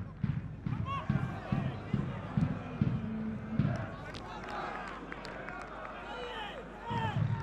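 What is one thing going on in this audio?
A stadium crowd chants and cheers loudly, outdoors.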